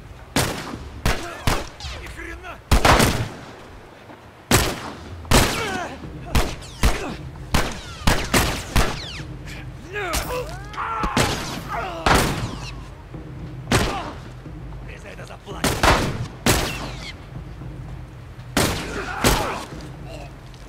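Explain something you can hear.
Heavy blows thud in a brutal fight.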